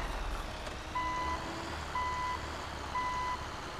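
A truck's reversing alarm beeps at a steady pace.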